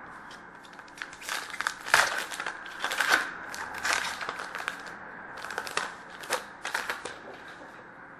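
Cards rustle and click as hands shuffle and handle them.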